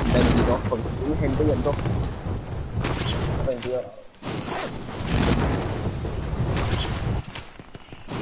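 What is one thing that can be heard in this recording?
Wind rushes loudly past during a high fall through the air.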